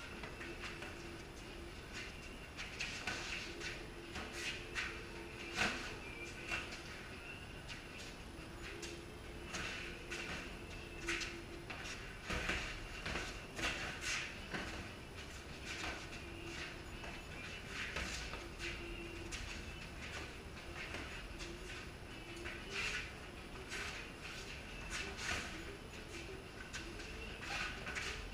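Boxing gloves thud against each other in quick bursts.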